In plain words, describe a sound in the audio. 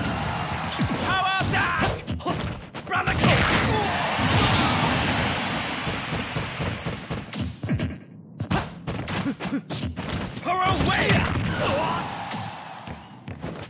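Punches and kicks land with sharp, quick smacks.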